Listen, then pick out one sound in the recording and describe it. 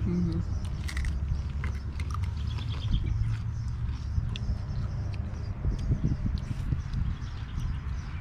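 Crisp tortilla chips crunch as they are chewed.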